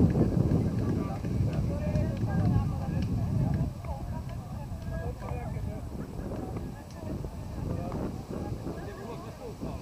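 Distant players shout and call to each other across an open field.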